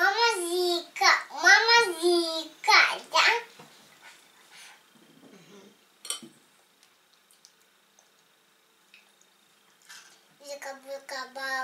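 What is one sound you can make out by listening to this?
A young child talks in a high voice close by.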